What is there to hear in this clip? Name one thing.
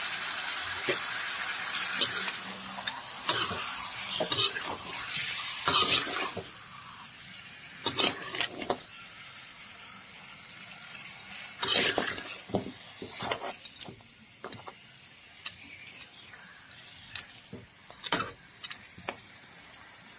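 A wooden spoon scrapes and clatters against a pan.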